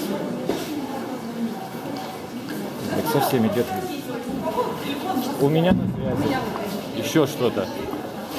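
Footsteps hurry across a hard floor.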